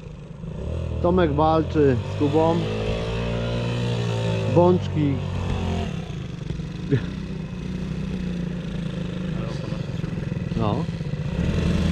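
A dirt bike engine revs up and down sharply as it rides past.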